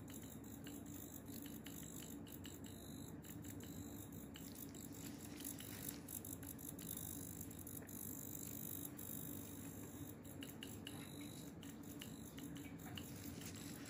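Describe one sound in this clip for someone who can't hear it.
A metal needle taps and scrapes softly against skin.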